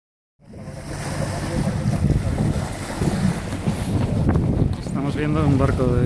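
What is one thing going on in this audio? Water splashes and rushes along a boat hull.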